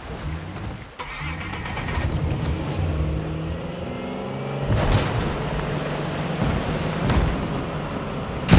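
A motorboat engine hums and revs.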